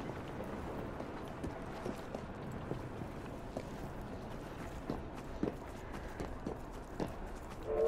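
Footsteps run quickly over gravel and railway ties.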